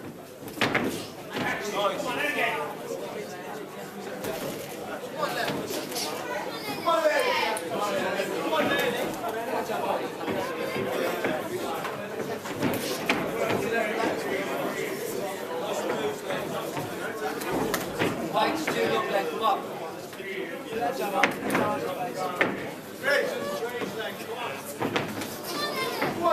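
Punches thud on boxing gloves and bodies.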